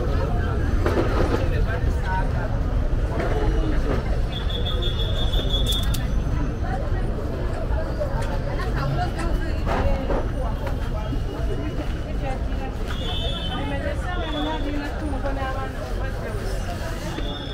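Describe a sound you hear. A busy crowd of men and women chatters all around outdoors.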